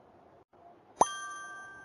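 A bright chime rings out and slowly rings away.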